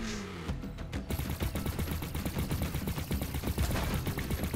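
Rapid electronic shots fire in quick bursts.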